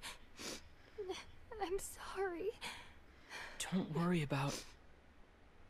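A young man speaks softly and apologetically, close by.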